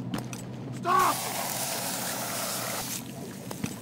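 A spray hisses steadily.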